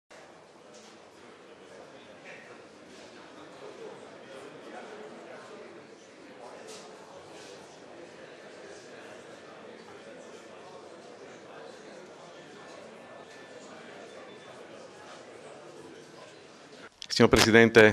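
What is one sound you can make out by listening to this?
A large crowd of young people cheers and chatters.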